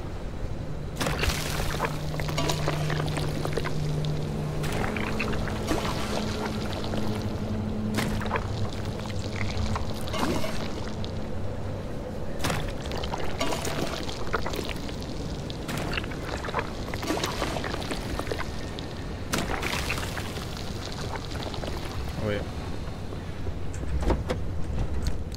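Metal parts clank and scrape as they are pried off an old car.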